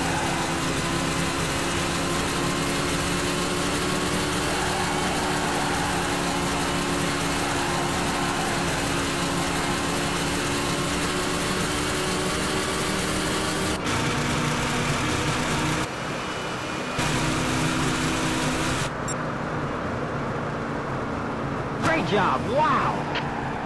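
A racing car's engine roars steadily at high speed.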